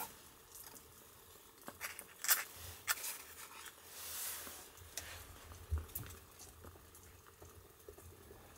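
A wooden lid knocks softly onto a bamboo steamer.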